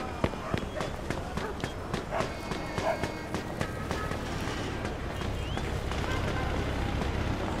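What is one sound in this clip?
Footsteps run and crunch on packed snow.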